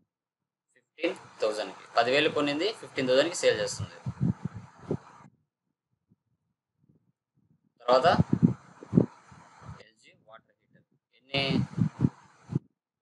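A young man speaks calmly into a close microphone, explaining.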